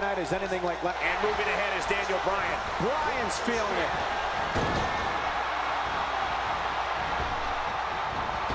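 A large arena crowd cheers.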